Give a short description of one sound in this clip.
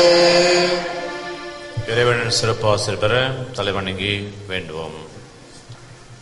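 An elderly man speaks and chants through a microphone, in a reverberant hall.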